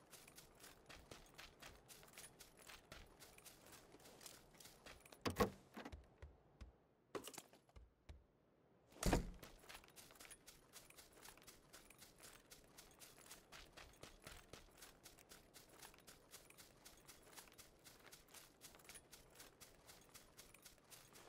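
Quick footsteps run over grass and dirt.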